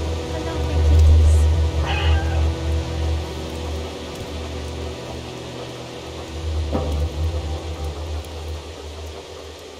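A cat's paws patter softly on the ground.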